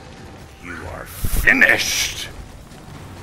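A heavy stone golem crashes down onto the ground.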